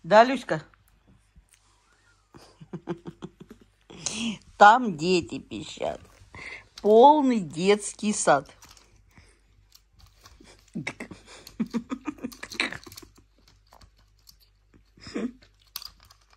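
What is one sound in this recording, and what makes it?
A baby monkey squeals and cries in short, rising and falling bursts.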